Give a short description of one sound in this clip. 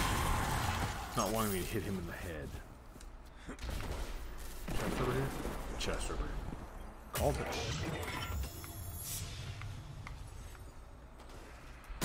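Game gunfire and effects crackle and boom.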